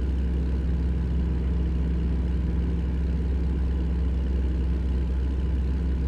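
Tyres hum on the road.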